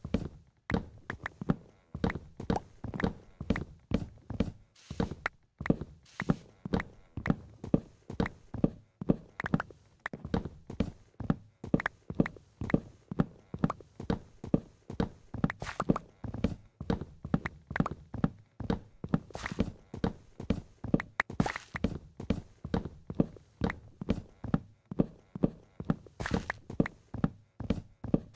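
An axe chops at wood in quick, steady blows.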